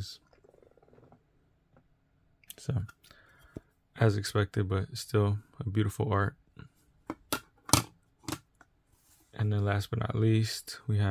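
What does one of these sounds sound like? Hard plastic cases click and tap as hands handle them.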